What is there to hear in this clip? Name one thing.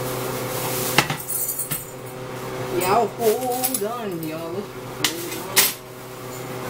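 A metal pot clanks on a stove.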